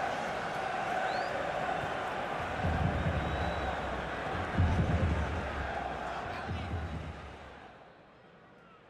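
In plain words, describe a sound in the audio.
A large stadium crowd roars and cheers, then fades away.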